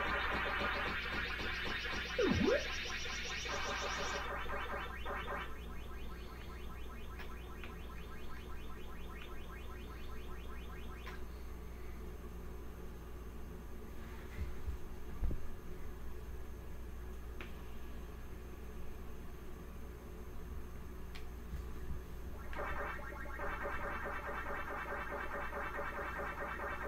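A retro video game plays rapid electronic chomping blips.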